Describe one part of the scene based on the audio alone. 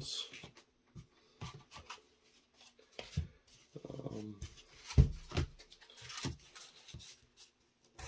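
Light foam pieces tap and knock softly on a tabletop.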